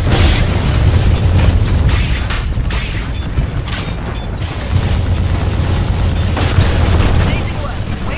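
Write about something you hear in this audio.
Heavy gunfire rattles rapidly in a video game.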